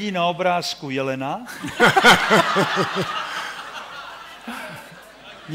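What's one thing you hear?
A man laughs heartily through a microphone.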